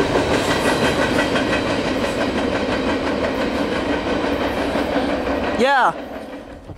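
Freight cars rumble and clatter along a track.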